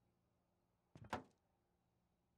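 A heavy metal grate clanks down onto concrete.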